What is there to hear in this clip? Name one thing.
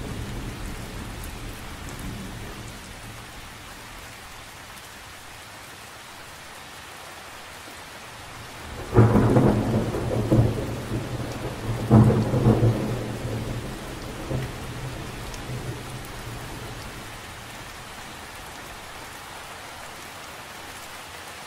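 Rain patters steadily on the surface of a lake.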